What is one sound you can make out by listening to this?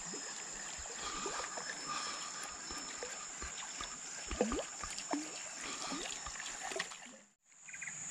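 River water laps softly.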